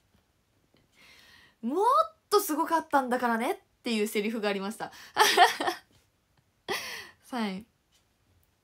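A young woman speaks brightly and animatedly close to a microphone.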